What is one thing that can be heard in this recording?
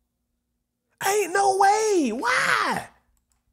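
A young man laughs loudly and shrieks close to a microphone.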